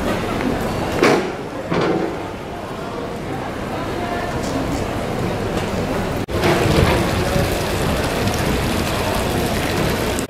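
Voices of people murmur softly across an open outdoor square.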